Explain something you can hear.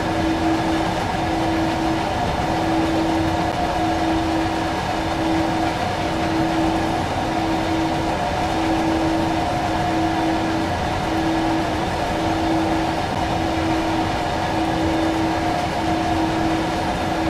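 An electric locomotive hums with a steady whine.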